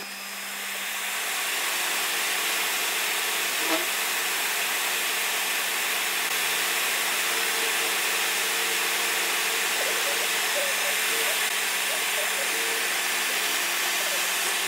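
A milling cutter grinds through metal with a steady hiss.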